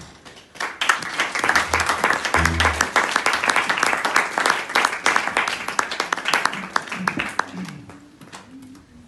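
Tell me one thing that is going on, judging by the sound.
Drums and cymbals are played fast and loud.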